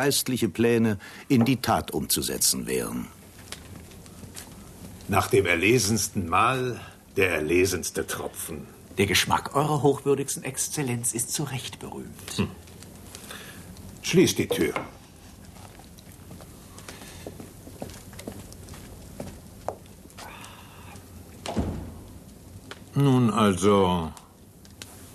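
A middle-aged man speaks calmly and with amusement, close by.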